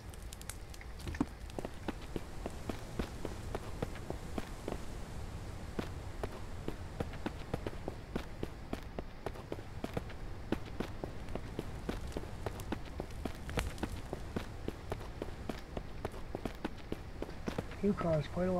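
Footsteps crunch steadily over ground and metal steps.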